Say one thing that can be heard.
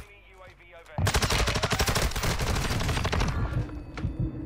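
Rapid gunfire rattles loudly in short bursts.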